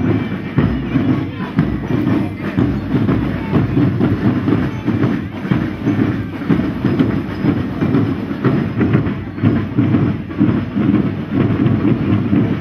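A marching band's drums beat a steady, lively rhythm outdoors.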